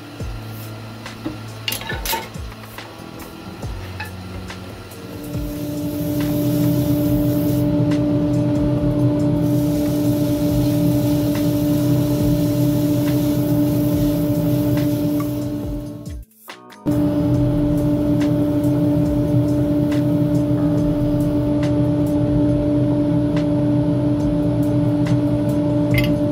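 A wood lathe motor hums steadily.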